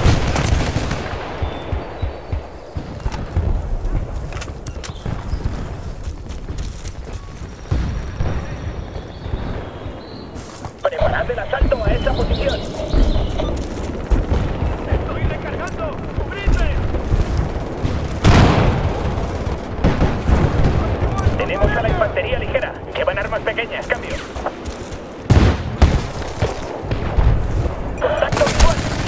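Gunfire and blasts crack in the distance.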